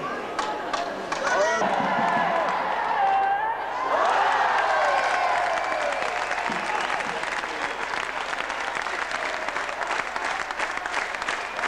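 A crowd of spectators cheers and shouts loudly in an echoing arena.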